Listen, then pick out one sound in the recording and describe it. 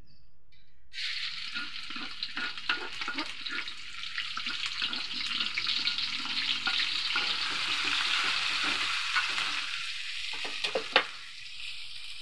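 Food sizzles loudly in hot oil in a wok.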